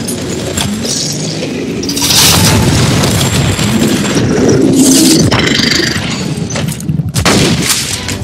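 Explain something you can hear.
Explosions burst and crackle.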